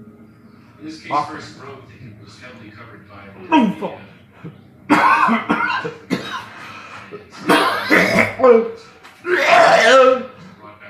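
An older man gags and retches loudly, close by.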